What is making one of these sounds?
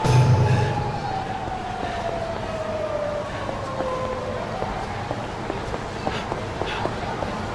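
Footsteps patter quickly on pavement as a man runs.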